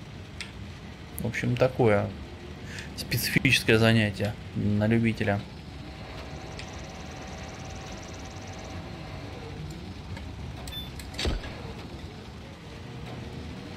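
A crane motor hums steadily as a load is lowered.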